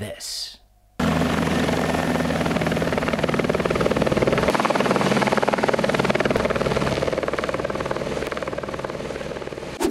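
A helicopter's rotor thumps loudly overhead.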